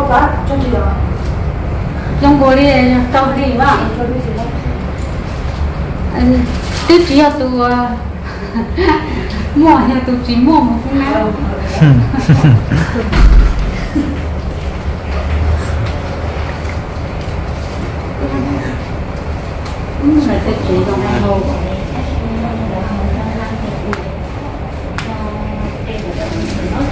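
A middle-aged woman talks calmly nearby.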